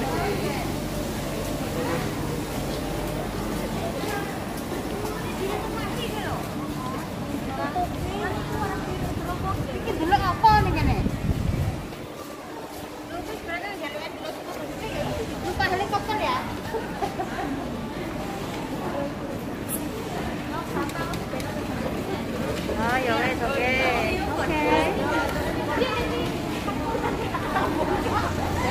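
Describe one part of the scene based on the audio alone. Many men and women chatter and talk nearby.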